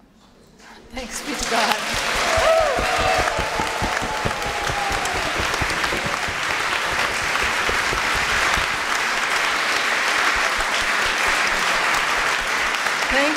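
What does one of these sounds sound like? A large audience applauds loudly.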